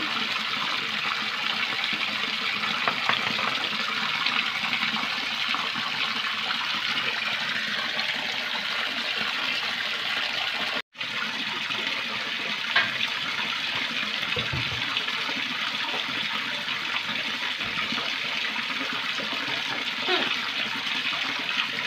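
Water pours steadily from a tap into a full tub, splashing loudly.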